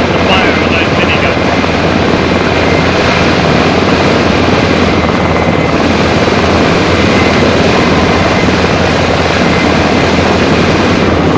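A helicopter's rotor thumps loudly close by.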